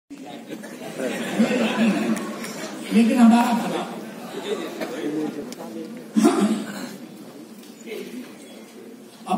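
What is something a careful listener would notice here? An elderly man recites with animation through a loudspeaker in a large echoing hall.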